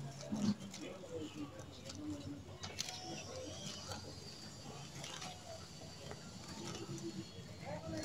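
Leaves of a pepper plant rustle as a hand reaches among them.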